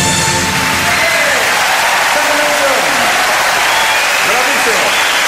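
Audience members whistle and cheer.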